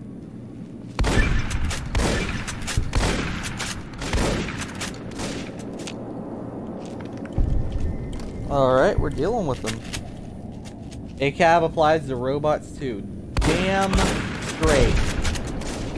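A shotgun fires loudly several times.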